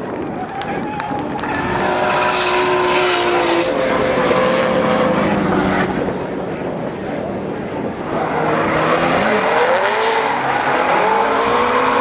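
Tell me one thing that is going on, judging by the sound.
Car engines rev hard, rising and falling in pitch.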